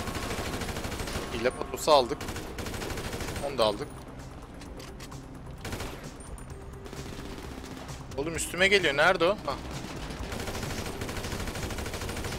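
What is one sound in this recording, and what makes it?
Gunfire from an assault rifle crackles in short bursts.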